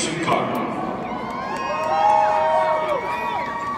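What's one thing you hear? A man sings through loudspeakers that echo across the stadium.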